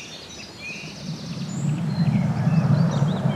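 A small ball rolls across the ground with a low rumble.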